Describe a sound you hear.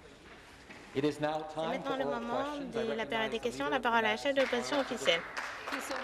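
A man speaks formally through a microphone in a large echoing hall.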